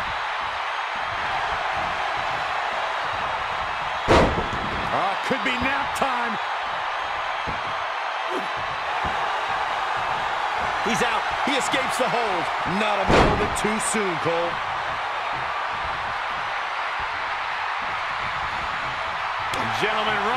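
A large crowd cheers steadily in an arena.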